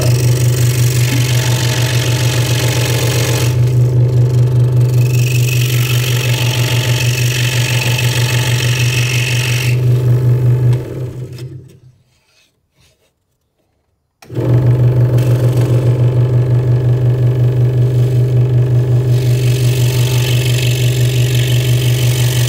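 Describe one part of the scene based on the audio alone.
A scroll saw hums and buzzes rapidly as its blade cuts through wood, stops briefly, then starts again.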